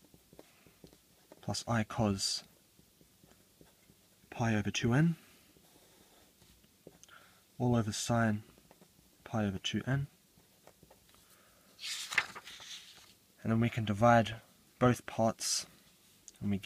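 A marker squeaks and scratches across paper.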